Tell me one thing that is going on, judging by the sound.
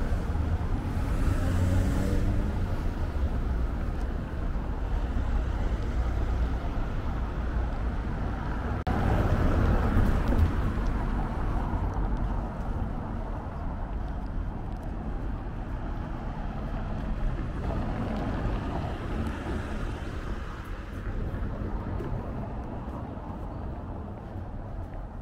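Traffic rumbles steadily on a nearby street outdoors.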